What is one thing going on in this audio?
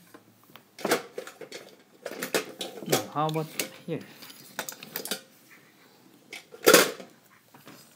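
Small metal toy trains clink and clack against each other as they are handled.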